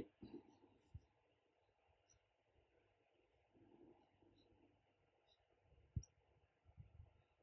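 A paintbrush dabs softly on paper.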